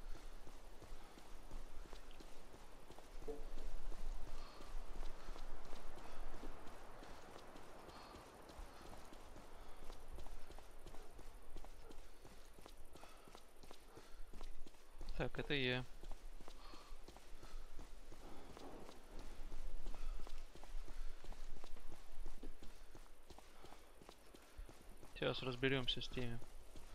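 Footsteps crunch steadily on cobblestones.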